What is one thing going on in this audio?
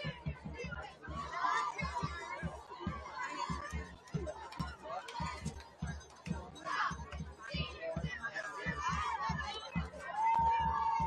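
A crowd of people chatters and shouts outdoors.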